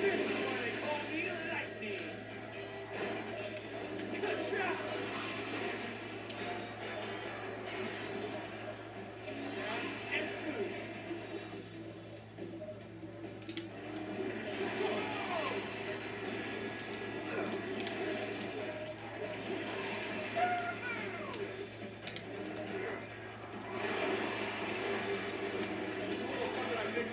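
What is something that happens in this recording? Engines roar and whine from a racing game on a television speaker.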